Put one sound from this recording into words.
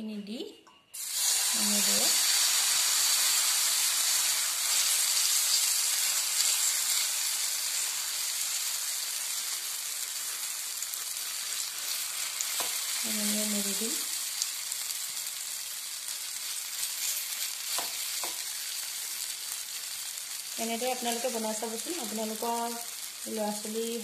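Batter sizzles loudly as it hits hot oil in a pan.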